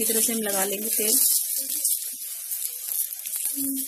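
A spoon scrapes across a hot pan.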